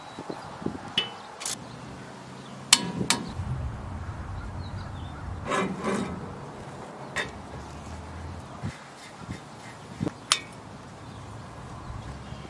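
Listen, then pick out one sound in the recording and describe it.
A ratchet wrench clicks as a bolt is turned.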